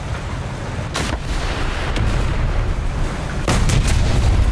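Loud explosions boom nearby.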